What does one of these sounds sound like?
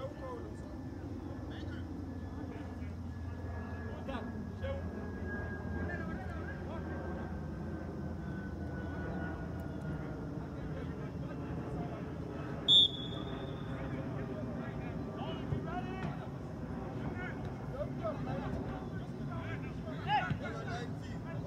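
Players shout to each other far off across an open field.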